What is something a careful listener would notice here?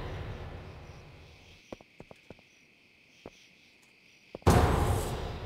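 Footsteps of a game character run on a path.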